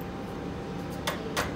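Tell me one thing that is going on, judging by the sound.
A metal machine door swings shut with a clank.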